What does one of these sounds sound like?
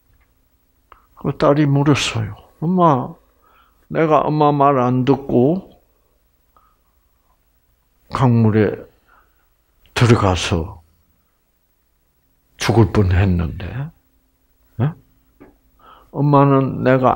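An elderly man speaks calmly in short phrases through a headset microphone, with pauses between them.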